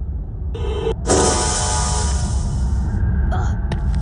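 A magic spell bursts with a bright hiss.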